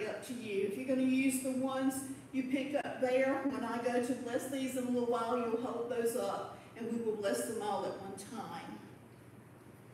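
A woman sings in a small, slightly echoing room.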